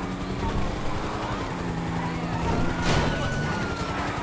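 A car crashes into a metal pole with a loud bang.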